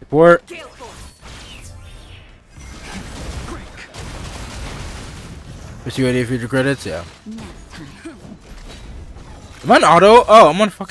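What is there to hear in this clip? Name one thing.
Magic energy blasts whoosh and crackle.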